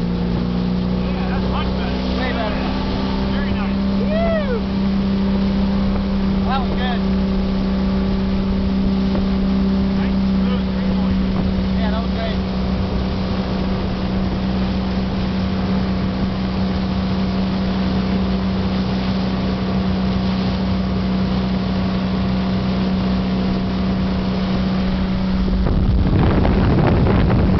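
Water sprays and rushes loudly behind a fast-moving boat.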